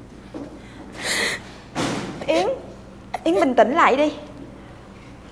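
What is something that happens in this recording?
A young woman cries out and sobs loudly.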